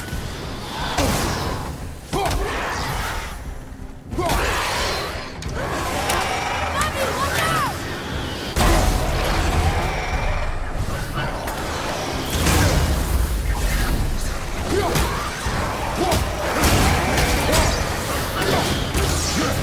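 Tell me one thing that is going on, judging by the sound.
Heavy blows and impacts thud during a fight.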